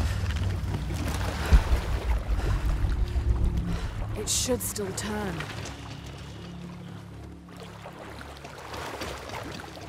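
Water gurgles and bubbles underwater.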